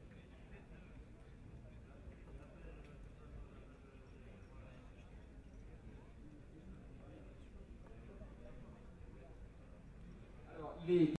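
A crowd murmurs faintly outdoors.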